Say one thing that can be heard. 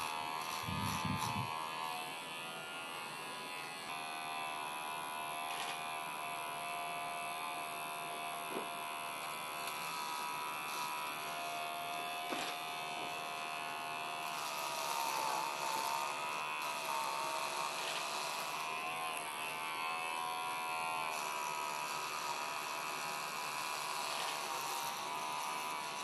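Electric hair clippers buzz as they cut through hair.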